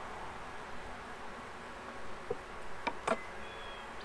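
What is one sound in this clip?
A metal tool is set down on wood with a light knock.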